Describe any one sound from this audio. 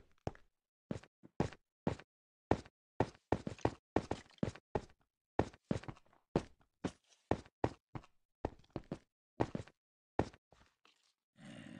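Footsteps thud on stone in quick, even steps.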